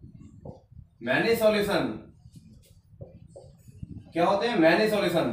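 A man explains calmly, close by.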